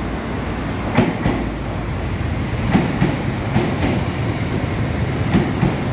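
Train wheels clack over rail joints.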